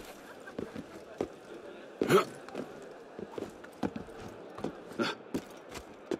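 Hands and feet scrape and thud against a stone wall while climbing.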